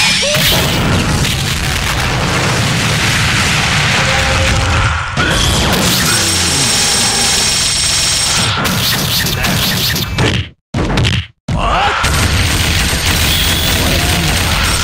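Blows and impact effects from a game fight land in quick succession.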